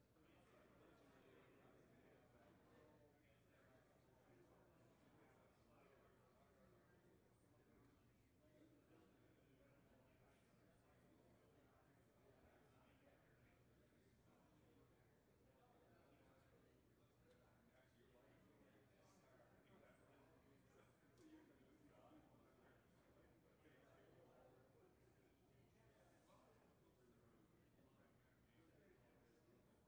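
A crowd of adults chats quietly in a large echoing hall.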